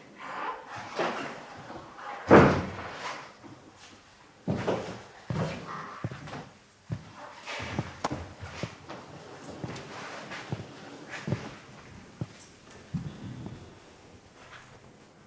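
A middle-aged man speaks quietly and calmly nearby.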